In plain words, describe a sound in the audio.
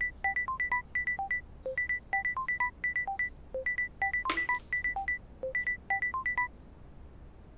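A phone beeps in quick tones as a number is dialed.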